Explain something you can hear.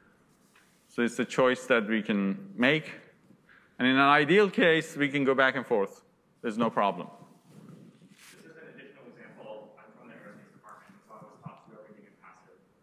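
A young man lectures through a microphone.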